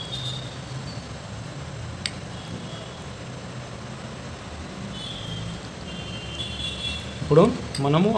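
A spoon scrapes spread across toasted bread.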